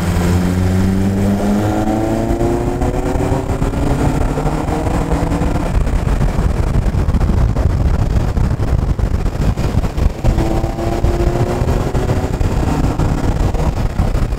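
Wind rushes against the car.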